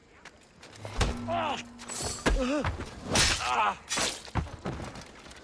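A blade strikes a body with heavy thuds.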